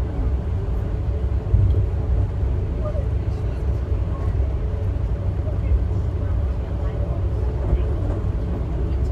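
A moving train rumbles low and steady on its tracks.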